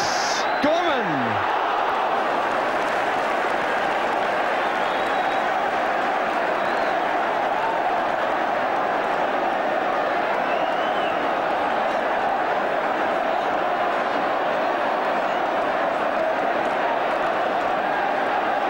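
A large crowd roars and cheers steadily outdoors.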